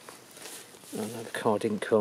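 A hand brushes against rustling grass.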